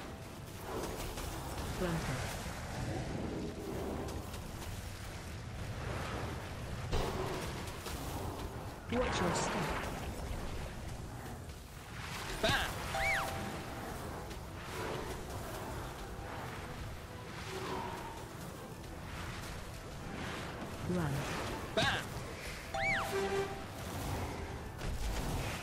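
Spell effects whoosh, crackle and chime in a busy game battle.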